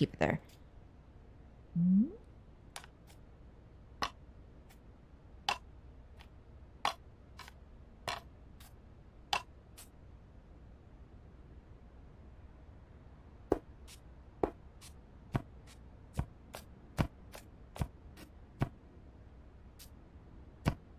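Short soft clicks tap at irregular intervals.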